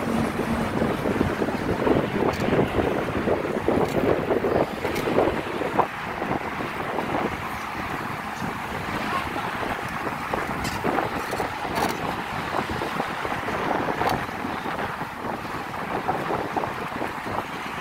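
Wheels roll steadily over smooth pavement.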